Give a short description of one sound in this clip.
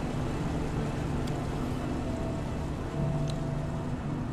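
A switch clicks as it is flipped.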